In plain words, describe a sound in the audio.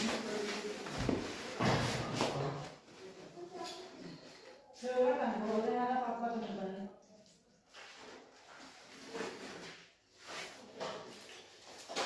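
A plastic sheet rustles and crinkles.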